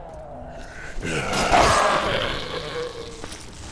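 A blade slashes and strikes flesh with a wet thud.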